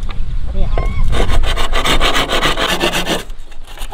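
A machete chops into bamboo with sharp knocks.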